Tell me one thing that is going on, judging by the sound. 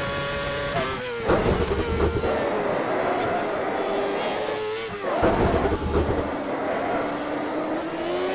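A racing car engine drops in pitch as it shifts down under braking.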